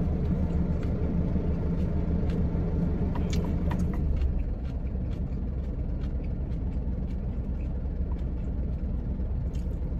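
A man slurps noodles up close.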